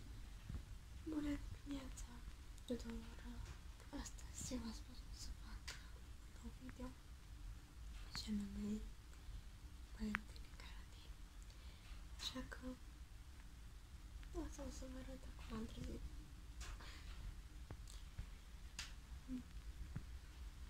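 A young woman speaks softly and quietly close to the microphone.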